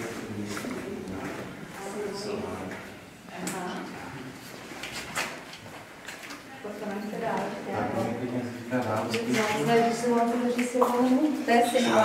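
Several men and women talk casually nearby in an echoing space.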